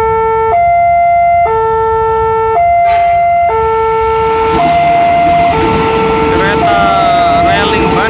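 A level crossing bell rings in a steady alternating two-tone pattern.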